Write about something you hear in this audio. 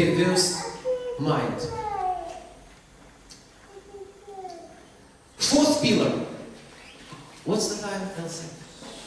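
A middle-aged man speaks with animation into a microphone in an echoing room.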